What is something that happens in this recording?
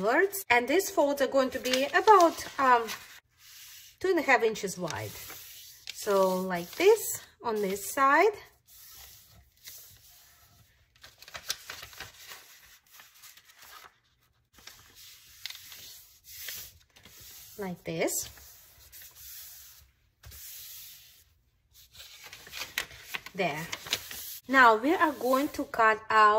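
Paper rustles and crinkles as it is folded and smoothed flat.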